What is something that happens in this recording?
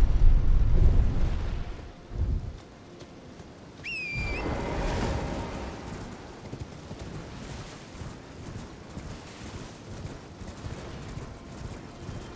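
Footsteps run through tall dry grass.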